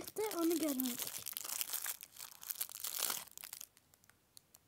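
A paper wrapper crinkles and rustles.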